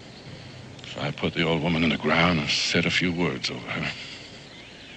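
A man speaks quietly and earnestly nearby.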